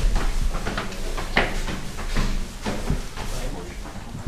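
Footsteps thud up concrete stairs.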